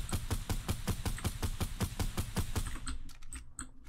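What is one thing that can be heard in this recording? A rifle fires in a rapid burst of shots.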